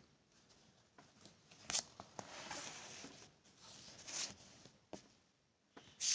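Paper pages rustle and shift close by.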